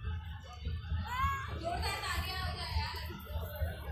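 Young girls talk and call out nearby, outdoors.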